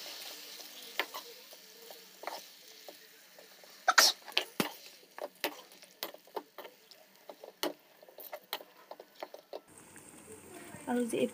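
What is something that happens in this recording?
A metal spoon clinks and scrapes against a metal pan.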